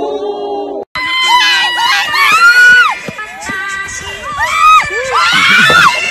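Young girls scream and squeal with excitement.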